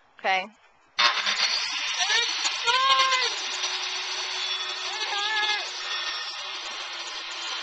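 A circular saw whines loudly as it cuts through wood.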